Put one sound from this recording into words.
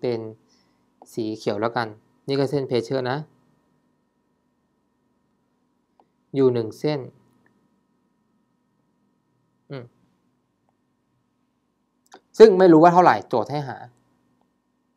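A young man speaks calmly into a close microphone, in short bursts with pauses.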